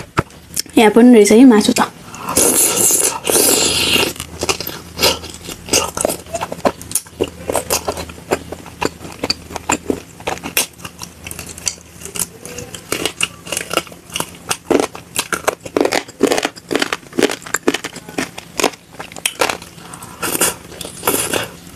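Food squelches and crackles as fingers pick it up.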